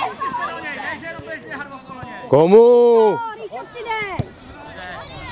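Children shout excitedly outdoors.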